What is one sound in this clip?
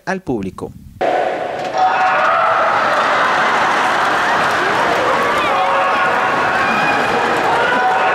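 A young woman speaks with animation through a loudspeaker.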